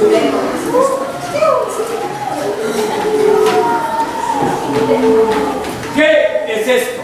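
Several men and women sing together, echoing in a large hall.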